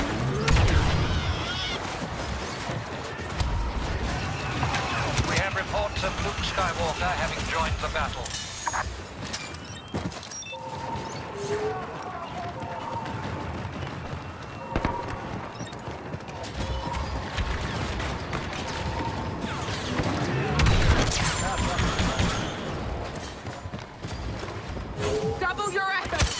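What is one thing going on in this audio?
A blaster pistol fires energy bolts in rapid bursts.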